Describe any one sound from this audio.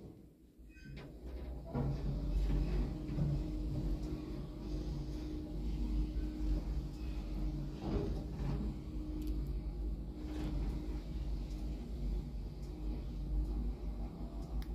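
A lift hums and rumbles steadily as it moves.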